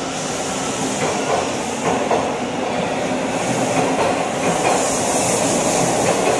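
A subway train pulls away, rumbling and clattering on the rails, echoing through a tiled underground station.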